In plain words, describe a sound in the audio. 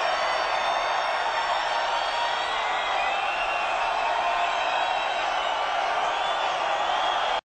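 A huge crowd cheers and roars loudly in a large arena.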